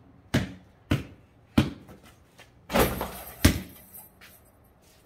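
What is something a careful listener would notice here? A basketball bounces hard on concrete.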